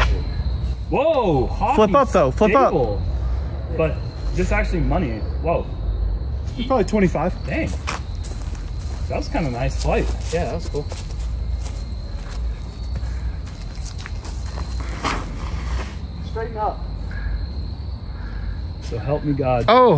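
A man speaks casually nearby outdoors.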